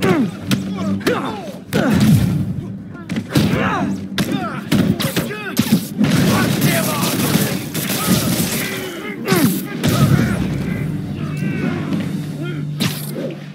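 Punches land with heavy thuds in a fight.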